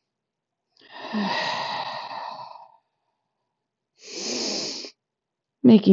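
A woman breathes in and out slowly and deeply.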